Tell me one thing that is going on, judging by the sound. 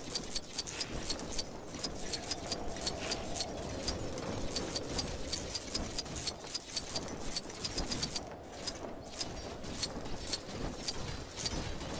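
Small coins clink and chime in quick succession as they are picked up.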